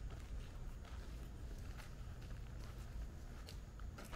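Footsteps crunch on gravel outdoors.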